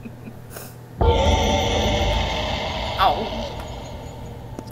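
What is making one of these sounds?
A loud chime rings out as an item is picked up.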